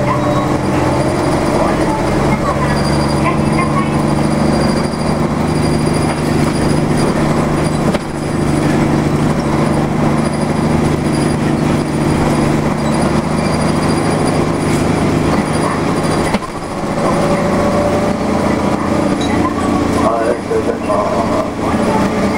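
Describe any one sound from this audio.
Road noise rumbles beneath a moving vehicle.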